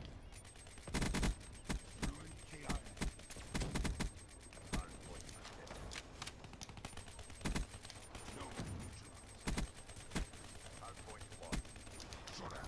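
A rifle fires in short bursts of gunshots.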